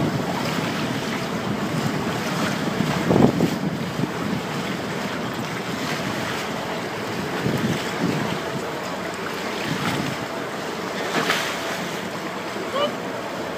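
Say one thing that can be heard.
Wind blows across the water.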